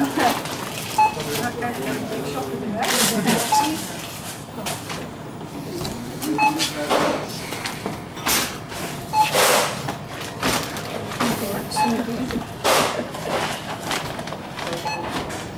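A checkout scanner beeps again and again.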